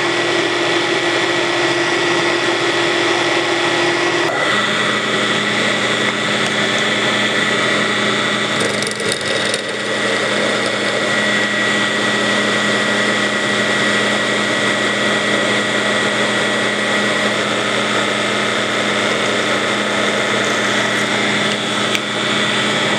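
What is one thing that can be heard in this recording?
A drill bit grinds into metal with a high whine.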